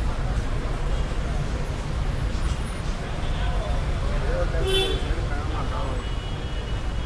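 Steady low traffic rumble fills a busy street outdoors.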